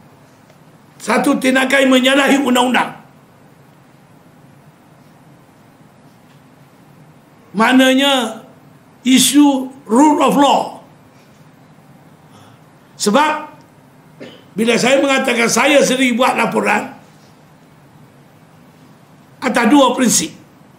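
An elderly man speaks firmly into microphones, with long pauses.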